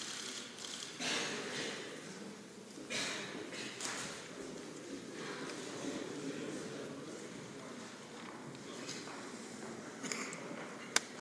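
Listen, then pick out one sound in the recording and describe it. A man speaks faintly through a microphone in a large hall.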